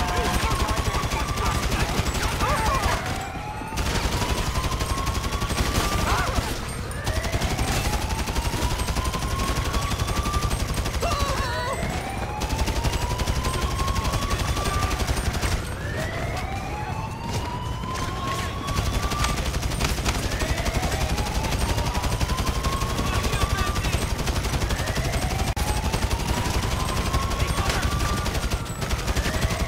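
A police siren wails over and over, rising and falling.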